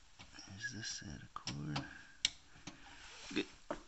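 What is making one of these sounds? A cable plug clicks and knocks into a socket.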